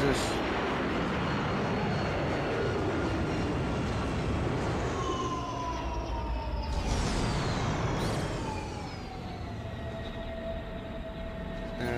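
A spaceship engine roars steadily in a video game.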